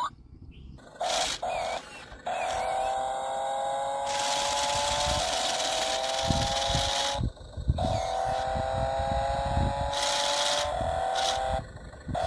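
A toy car's electric motor whirs loudly, its pitch slowly rising, with short breaks.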